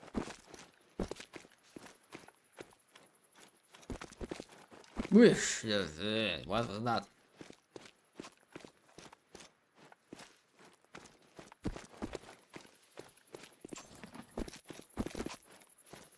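Footsteps crunch through dry grass and brush.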